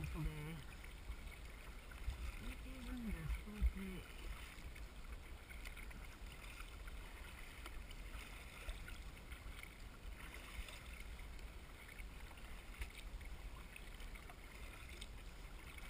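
A kayak paddle dips and splashes through choppy water.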